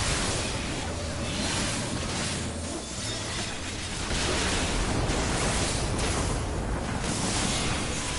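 Magic spells whoosh and crackle in a game battle.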